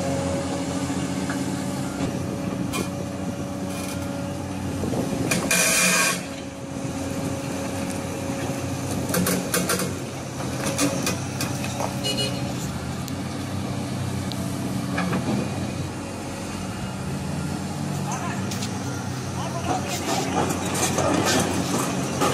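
A heavy excavator engine rumbles steadily nearby.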